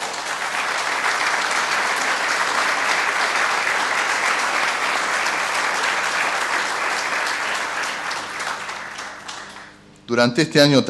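A crowd applauds loudly in a large hall, then the clapping fades away.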